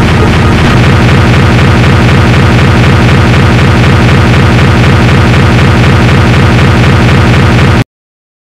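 Loud electronic music with a heavy thumping beat plays.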